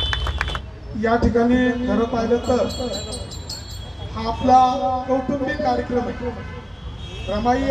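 A man speaks loudly and with animation through a microphone and loudspeakers.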